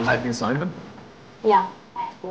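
A man speaks tensely.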